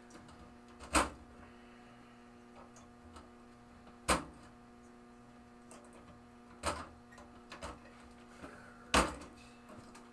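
Metal parts clack and knock sharply inside a cabinet.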